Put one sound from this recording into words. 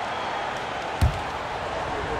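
A basketball bounces once on a hardwood court.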